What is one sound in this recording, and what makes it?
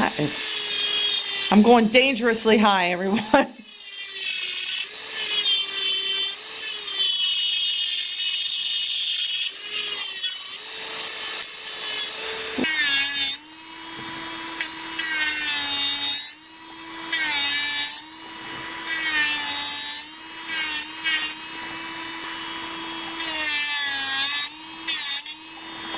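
An electric nail drill whirs steadily as it files a nail.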